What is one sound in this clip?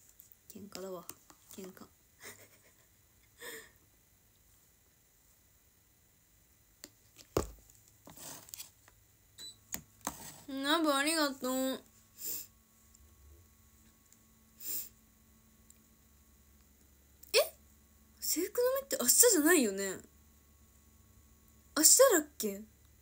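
A young woman talks close to a phone microphone.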